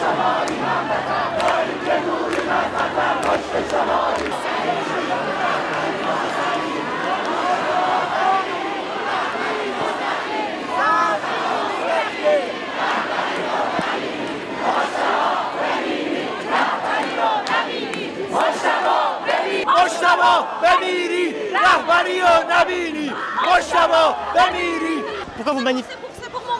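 A large crowd of protesters chants loudly outdoors.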